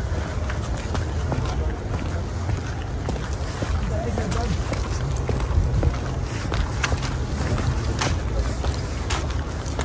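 Footsteps walk on a paved path.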